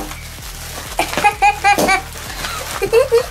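A young boy talks and giggles up close.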